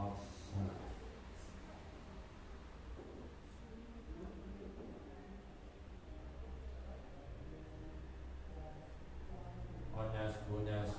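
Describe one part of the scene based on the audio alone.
A young man chants melodically into a microphone, heard through a loudspeaker in an echoing room.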